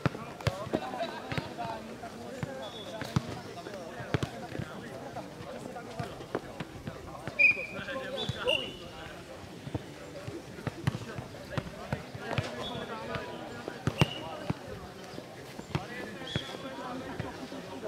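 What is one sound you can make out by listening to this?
Voices of players and onlookers murmur and call out at a distance.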